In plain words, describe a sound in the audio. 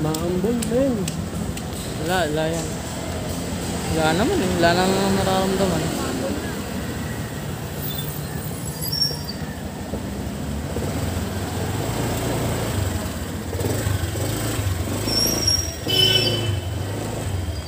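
A motorcycle engine hums steadily while riding slowly.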